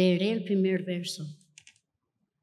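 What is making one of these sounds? A young woman speaks clearly into a microphone in a large hall.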